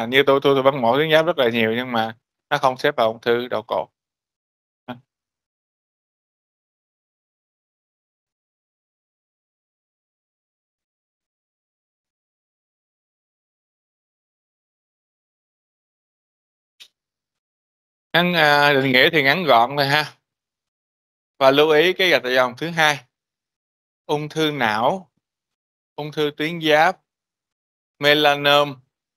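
A man lectures steadily through a microphone over an online call, pausing now and then.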